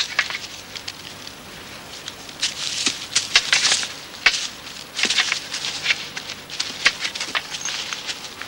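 Deer antlers clash and clatter sharply, over and over.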